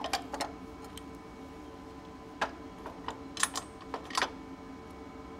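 Metal parts clink and knock as they are set in place.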